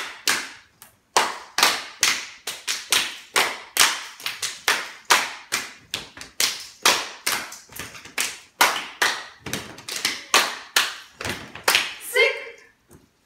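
Women clap their hands in a steady, quick rhythm.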